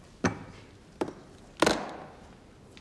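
Briefcase latches snap open with sharp clicks.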